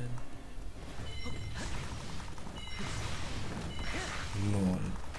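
A sword swings and slashes with whooshing sounds.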